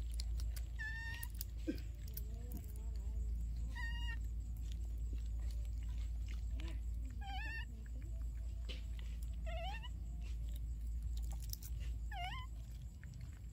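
A baby monkey gives short high squeaks.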